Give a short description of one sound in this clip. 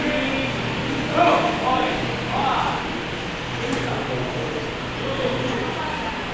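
Bare feet shuffle and thump on mats.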